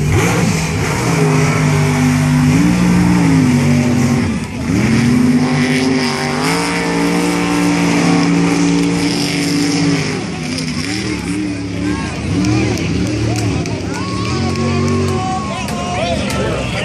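A loud vehicle engine roars and revs hard, its pitch rising and falling.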